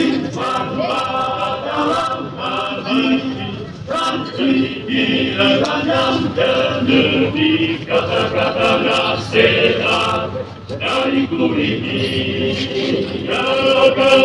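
A group of men sing together loudly in unison.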